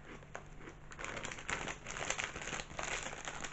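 A crisp packet rustles and crinkles.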